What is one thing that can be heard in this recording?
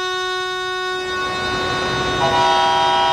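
An air horn blasts loudly.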